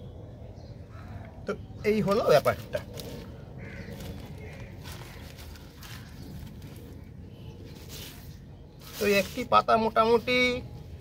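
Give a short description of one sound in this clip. Hands crumble and rustle through lumps of soil.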